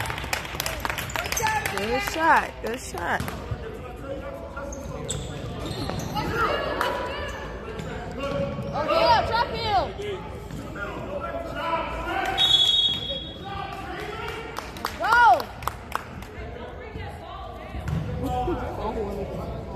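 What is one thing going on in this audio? Spectators murmur and call out in the echoing gym.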